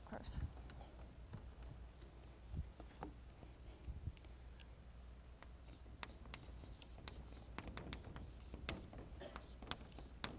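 Chalk taps and scrapes on a blackboard.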